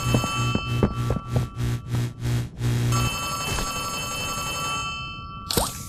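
A phone rings with a bright electronic trill.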